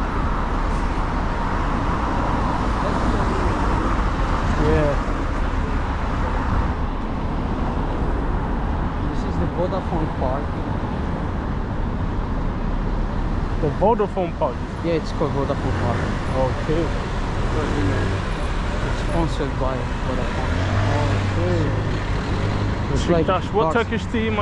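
Tyres roll on asphalt as traffic passes.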